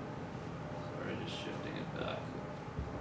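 A man speaks through a microphone, heard from across a room.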